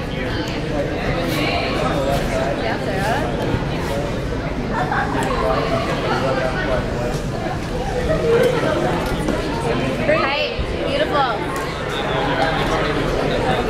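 Feet thud on a wooden beam.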